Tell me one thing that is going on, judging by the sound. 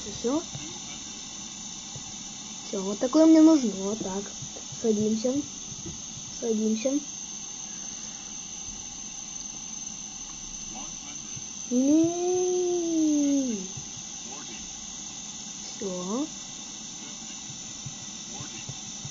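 A jet engine hums and whines steadily.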